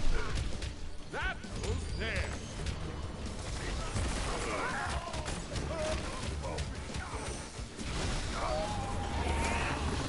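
Game battle effects clash and boom.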